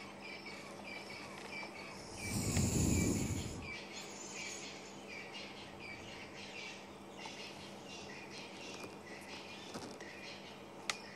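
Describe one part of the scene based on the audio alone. A leopard rustles through leafy undergrowth.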